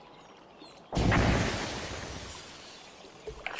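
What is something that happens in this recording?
A rifle shot booms and echoes away.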